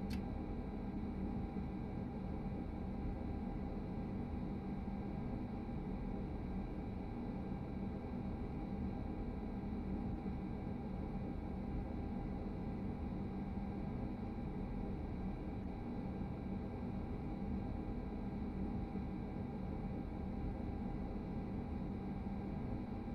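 A train engine hums and rumbles steadily.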